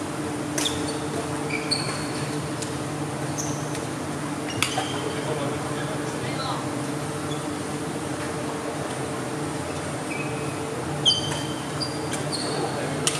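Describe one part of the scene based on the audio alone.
Shuttlecocks are struck sharply by rackets in a large echoing hall.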